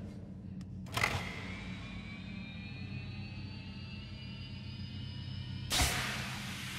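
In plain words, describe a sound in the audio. A hanging metal box clangs and rings out.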